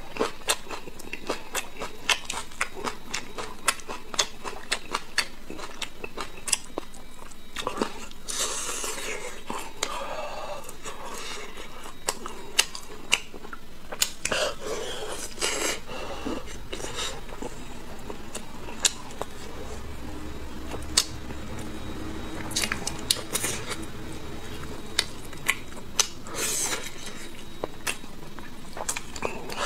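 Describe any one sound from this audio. A man chews and smacks on braised meat close to a microphone.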